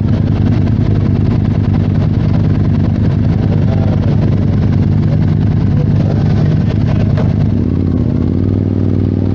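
A motorcycle engine idles with a rough, throbbing rumble.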